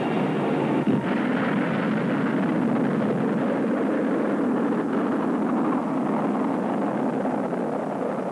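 A rocket engine roars with a deep, steady rumble as it lifts off in the distance.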